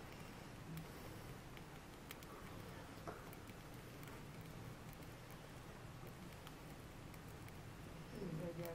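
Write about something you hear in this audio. Flames roar softly with a steady low rush.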